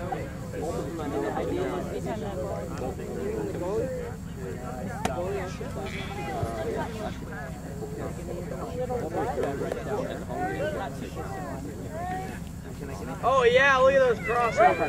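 Young people talk and call out outdoors.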